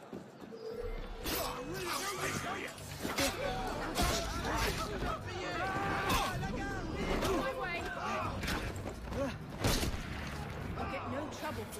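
Game sounds of fighting and clashing blows ring out.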